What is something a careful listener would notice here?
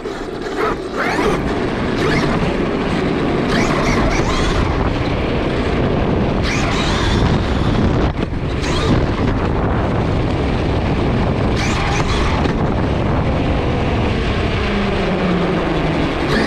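Small tyres rumble and hiss over rough paving.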